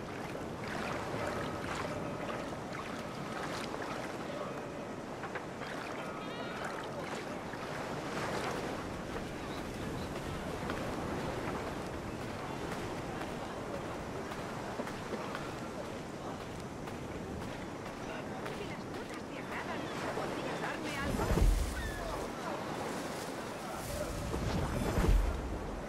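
Footsteps crunch steadily on sand.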